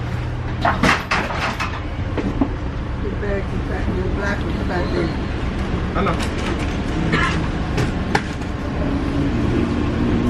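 A subway train rumbles and rattles steadily.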